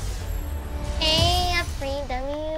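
A short triumphant musical fanfare plays.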